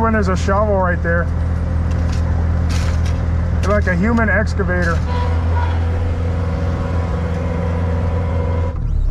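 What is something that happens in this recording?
A heavy machine's diesel engine idles with a steady low rumble.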